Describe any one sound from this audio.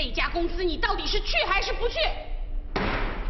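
A woman speaks sharply and insistently, close by.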